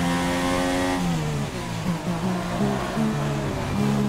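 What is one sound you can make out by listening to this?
A racing car engine drops in pitch as the car brakes and downshifts.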